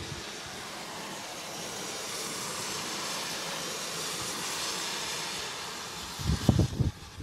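A car swishes past on a wet road.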